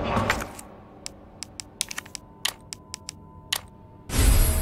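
Menu clicks tick sharply, one after another.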